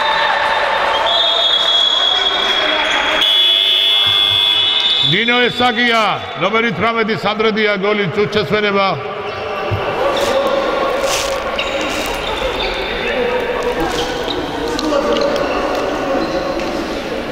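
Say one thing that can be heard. Girls shout and call out to one another in a large echoing hall.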